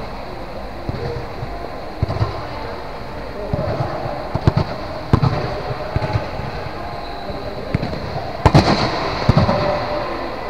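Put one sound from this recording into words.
A volleyball thumps off hands and arms in a large echoing hall.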